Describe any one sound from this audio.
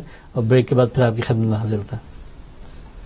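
A man speaks with animation into a microphone, close by.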